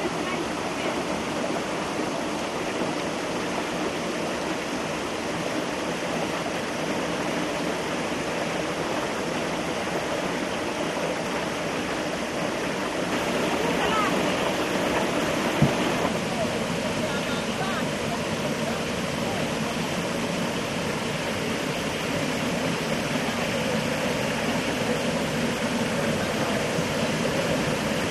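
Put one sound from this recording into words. Water rushes and churns loudly nearby.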